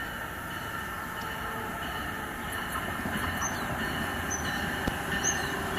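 A train approaches in the distance with a low rumble that slowly grows louder.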